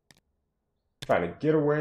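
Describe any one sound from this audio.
A young man speaks into a microphone with animation.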